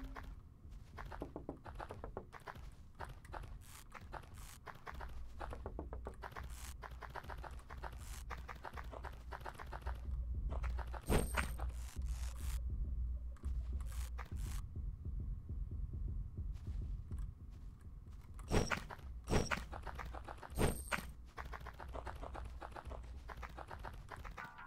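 Quick footsteps patter in a game.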